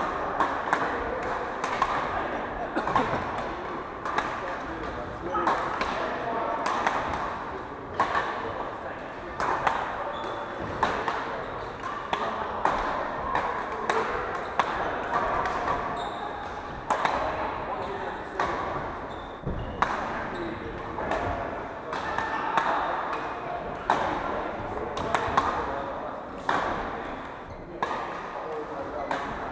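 Shoes squeak on a wooden floor.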